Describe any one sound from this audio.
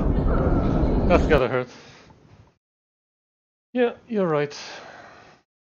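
A young man talks and laughs into a close microphone with animation.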